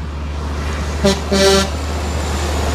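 A truck's air horn blares in short loud blasts.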